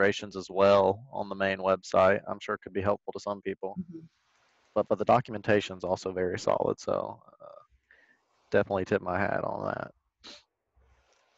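A man talks calmly over an online call.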